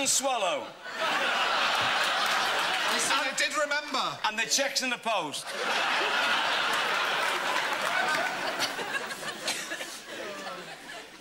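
An audience laughs and applauds loudly.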